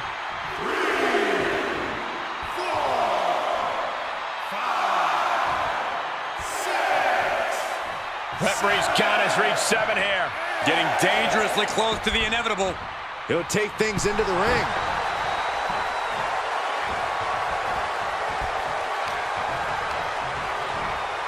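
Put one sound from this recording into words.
A large crowd chants and cheers in a big echoing arena.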